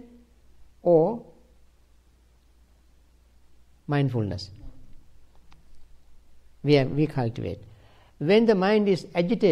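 An elderly man speaks slowly in short phrases close by.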